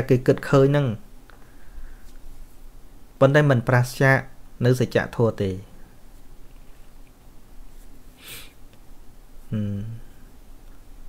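A man speaks in short, measured phrases, close to a microphone.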